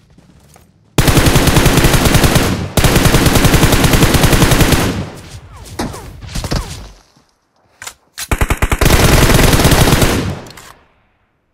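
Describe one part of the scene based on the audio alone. A rifle fires rapid, loud bursts of shots.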